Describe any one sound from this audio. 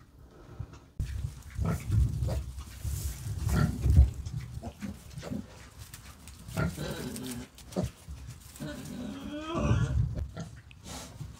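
Piglets grunt and squeal close by.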